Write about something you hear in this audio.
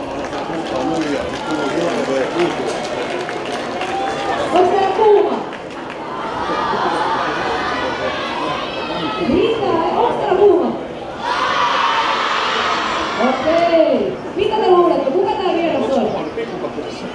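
A young girl speaks into a microphone, heard through loudspeakers echoing outdoors.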